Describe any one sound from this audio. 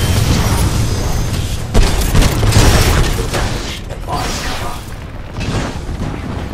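A heavy automatic cannon fires in rapid bursts.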